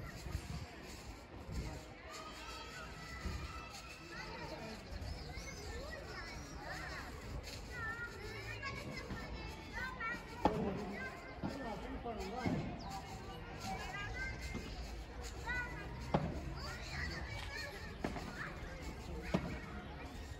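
Paddles strike a ball with sharp pops, outdoors.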